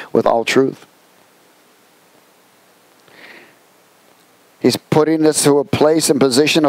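A man speaks calmly through a headset microphone, pausing between phrases.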